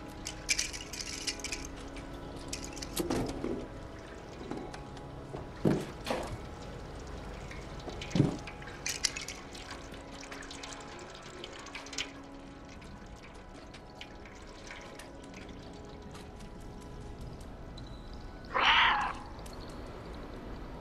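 A cat's paws patter softly on a hard floor.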